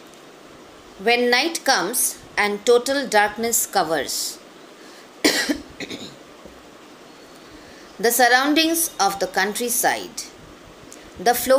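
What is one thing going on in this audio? A woman speaks calmly and close up, heard through a phone microphone.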